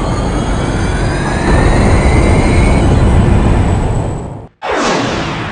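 A spaceship engine roars loudly.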